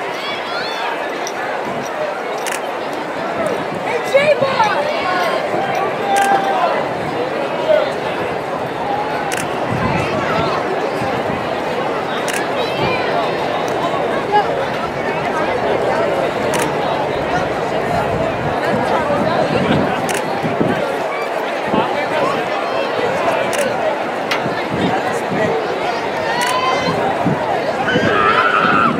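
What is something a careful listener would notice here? A large crowd chatters outdoors.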